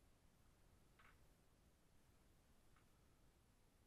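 Small metal tools clink softly on a desk.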